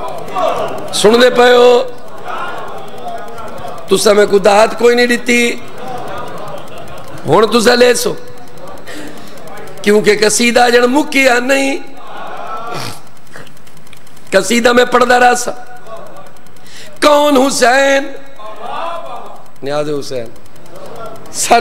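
A man recites loudly in bursts through a microphone and loudspeakers in an echoing hall.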